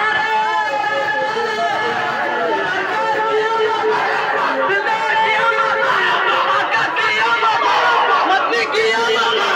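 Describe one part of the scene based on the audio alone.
A crowd of men chants together through loudspeakers, loud and distorted.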